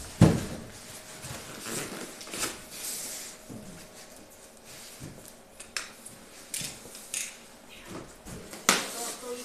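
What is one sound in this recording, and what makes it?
Large cardboard panels scrape and rustle as they are handled.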